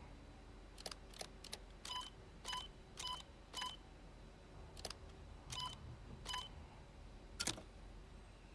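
Short electronic beeps and clicks sound in quick succession.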